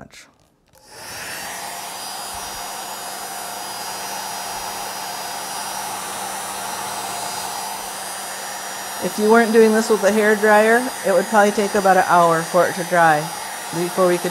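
A hair dryer blows with a steady whir.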